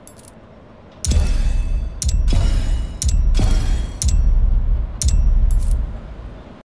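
Deep booming hits ring out one after another, about once a second.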